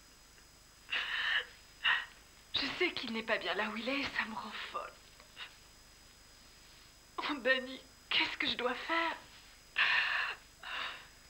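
A young woman sobs and breathes shakily.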